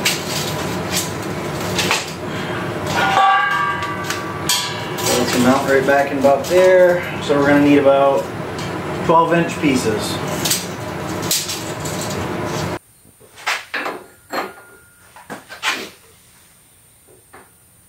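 Metal parts clank and knock.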